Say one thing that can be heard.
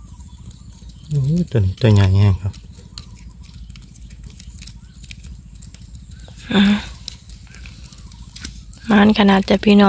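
Small live shrimp flick and patter in a bucket of water.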